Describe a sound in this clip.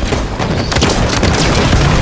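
Rapid gunfire rattles loudly.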